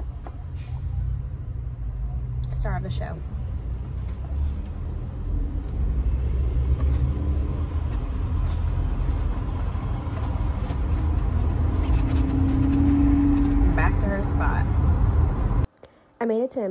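A car's engine and road noise rumble steadily from inside.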